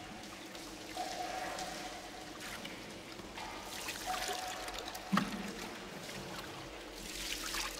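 Water splashes as a man pours it over himself.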